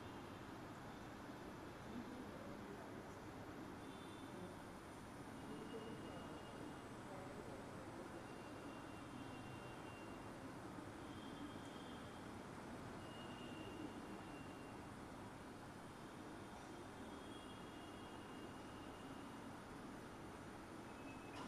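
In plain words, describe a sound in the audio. Electric fans whir steadily.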